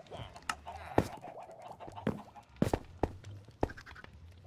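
A fire crackles and pops nearby.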